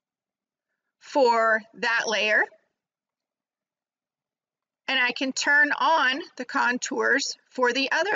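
A woman talks calmly and close to a microphone.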